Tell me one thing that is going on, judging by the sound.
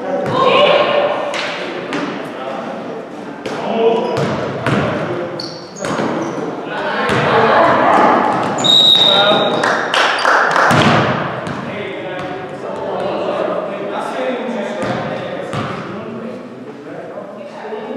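Players shout and call out to each other in a large echoing gym.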